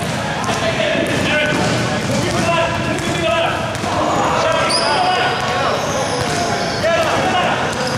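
Young men call out to each other across an echoing hall.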